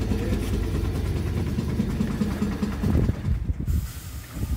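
A train engine hums steadily inside a carriage.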